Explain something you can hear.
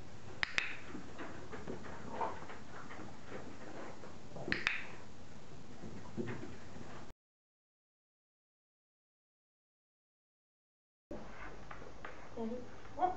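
A dog's claws tap on a hard floor.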